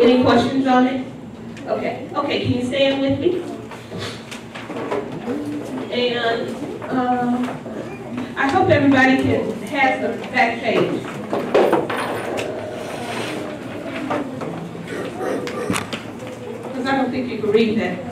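A woman speaks with animation into a microphone, heard through a loudspeaker in an echoing room.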